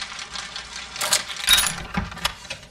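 A lock snaps open with a loud clunk.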